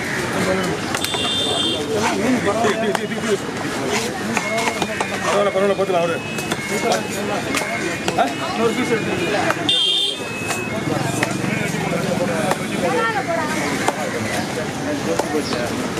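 Men talk busily close by.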